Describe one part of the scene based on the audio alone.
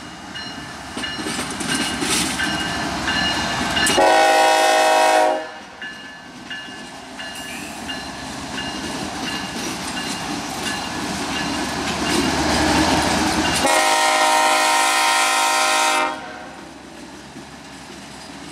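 Train wheels squeal and clatter on the rails.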